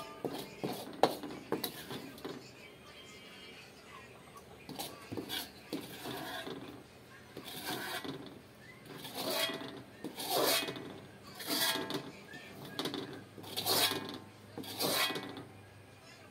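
A metal spoon scrapes and clinks against a wok.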